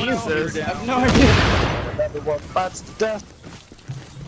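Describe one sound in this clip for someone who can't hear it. An explosion booms and rumbles away.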